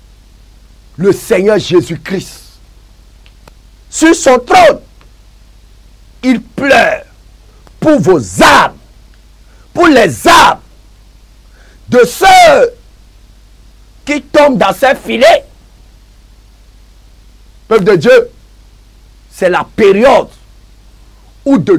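A man speaks with emotion into a close microphone, in short bursts with pauses.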